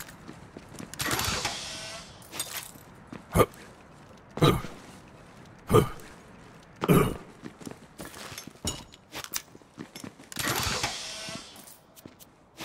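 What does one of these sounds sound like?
A crate lid pops open with a burst of hissing gas.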